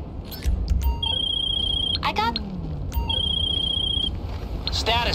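A phone rings with a repeating electronic ringtone.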